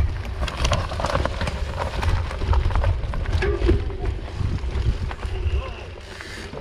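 A bicycle rattles and clicks over bumps.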